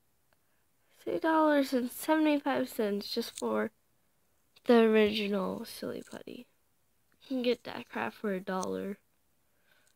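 A young woman speaks with animation close to a phone microphone.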